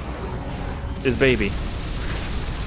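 A bright electronic warble sounds as a power-up is collected.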